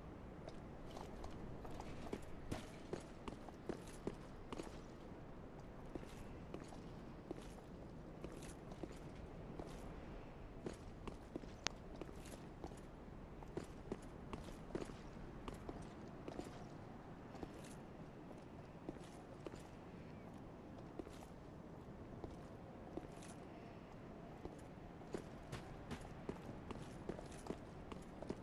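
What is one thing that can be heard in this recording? Footsteps crunch and scrape on stone at a steady walking pace.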